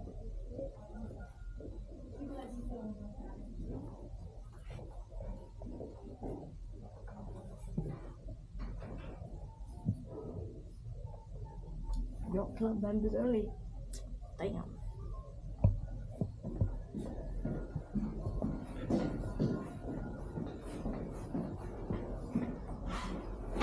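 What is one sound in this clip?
A boy talks close by with animation.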